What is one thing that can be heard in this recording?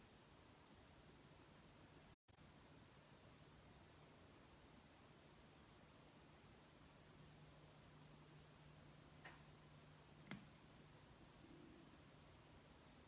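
A record player's motor hums faintly and steadily.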